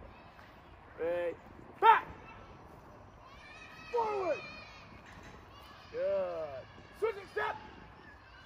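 A group of young children shout loudly together in short bursts outdoors.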